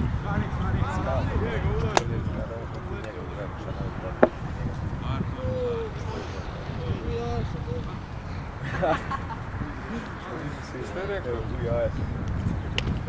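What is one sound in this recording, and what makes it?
Young men call out to each other across a field, distant.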